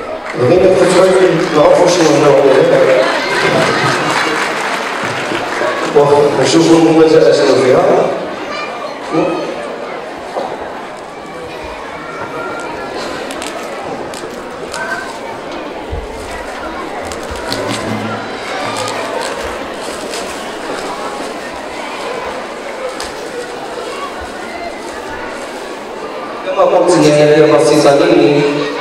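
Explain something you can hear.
A man speaks into a microphone, amplified through loudspeakers in a large echoing hall.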